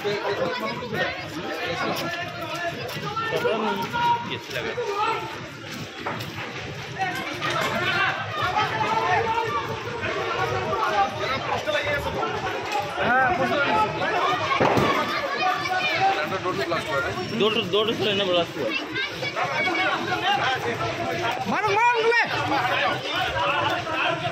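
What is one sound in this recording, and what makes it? Several people shout and talk excitedly nearby.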